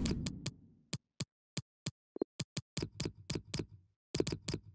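Menu selections click in quick succession.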